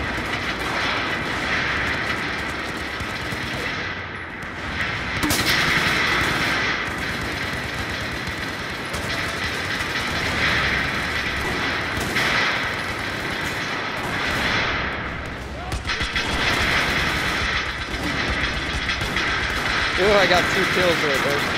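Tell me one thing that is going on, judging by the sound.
Rapid gunfire crackles and echoes.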